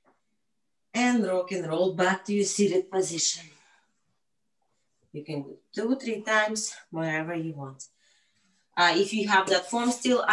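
A woman talks calmly into a microphone, in short bursts with pauses.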